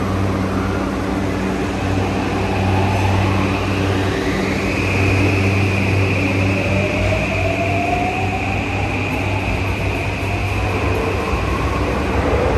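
A train pulls out of an underground station with a rising electric motor whine.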